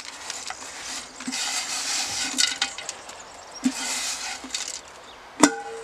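Ash pours and scrapes out of a metal bucket.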